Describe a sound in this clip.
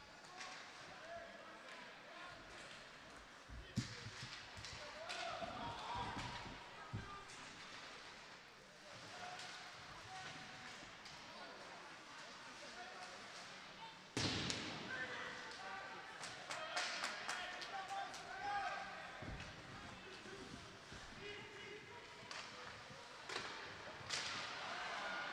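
A crowd murmurs and cheers in an echoing arena.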